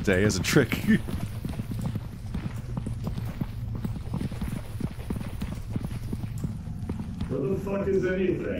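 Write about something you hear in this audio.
Footsteps thud steadily on a hard floor in an echoing space.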